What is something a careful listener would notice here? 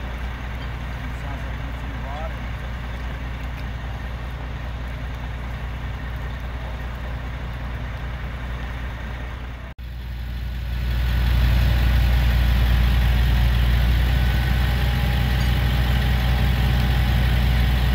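A crane's diesel engine rumbles steadily nearby.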